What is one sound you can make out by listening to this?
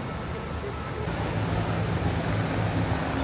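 A bus engine idles nearby with a low rumble.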